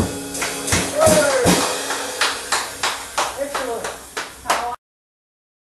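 A drummer plays drums and crashes cymbals.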